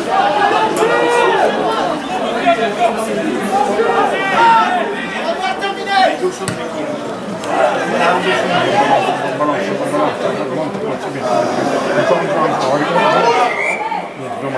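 Young men shout and call out to each other outdoors.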